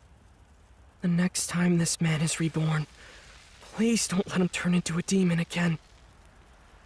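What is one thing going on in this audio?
A young man speaks softly and sadly, close up.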